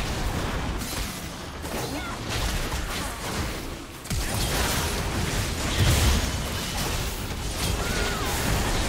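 Game weapons strike with sharp hits.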